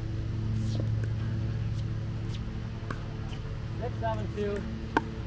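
Paddles pop sharply against a plastic ball.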